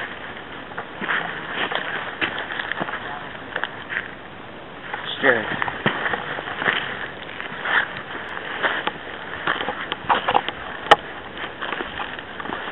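Footsteps crunch on dry leaves and twigs outdoors.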